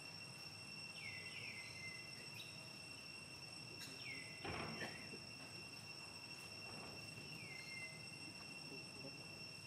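A small monkey clambers and rattles a wire fence.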